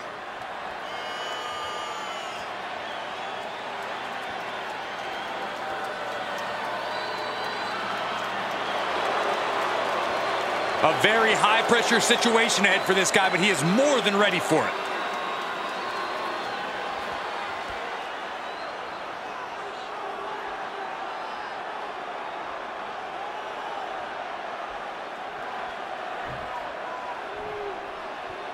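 A large arena crowd roars and cheers steadily.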